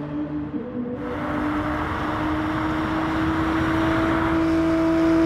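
Tyres hum and rush over the track.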